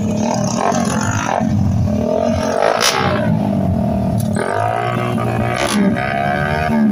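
A small motorcycle engine revs loudly and repeatedly close by.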